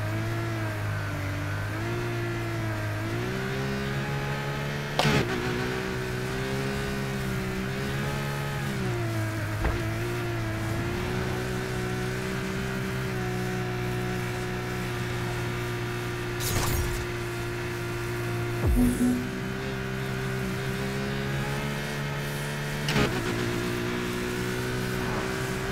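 A sports car engine roars steadily, rising and falling in pitch.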